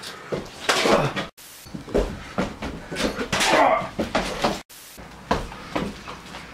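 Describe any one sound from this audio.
A young man shouts with agitation close by.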